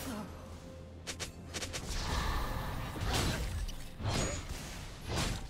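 Game spells burst and crackle in a fight.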